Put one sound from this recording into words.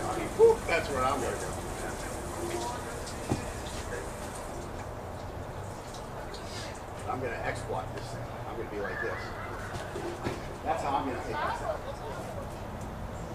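Two young men shout and talk excitedly outdoors.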